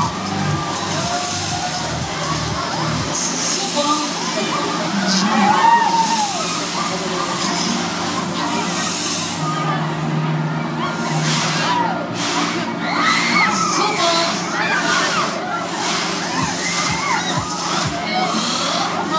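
A crowd of riders screams and shrieks with excitement.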